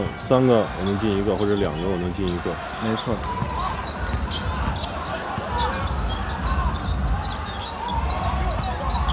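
A crowd in a large echoing arena murmurs and cheers.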